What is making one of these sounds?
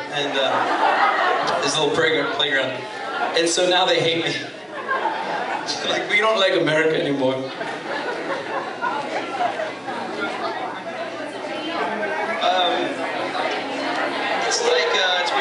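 An acoustic guitar strums.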